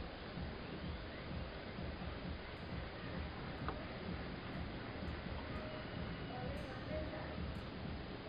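A young girl speaks softly close to a microphone.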